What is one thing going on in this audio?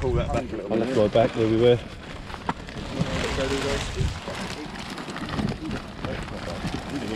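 A plastic sheet rustles as a dog pushes underneath it.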